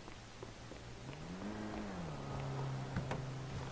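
A car engine hums nearby.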